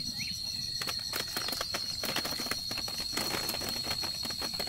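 Small fruits knock and tumble into a woven basket.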